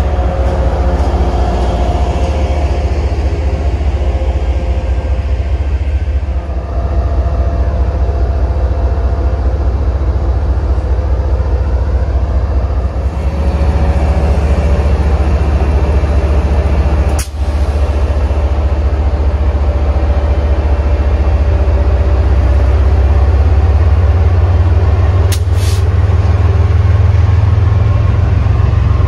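A train's wheels clatter and squeal along the rails.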